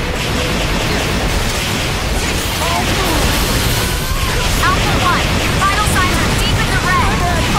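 Weapons clash and strike against a monster's armour.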